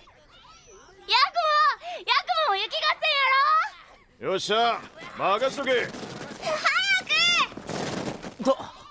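A child shouts excitedly.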